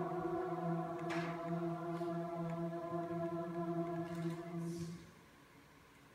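A choir sings a sustained chord in an echoing hall, then falls silent.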